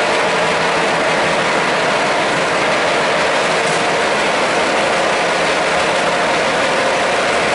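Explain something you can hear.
A machine roars steadily nearby.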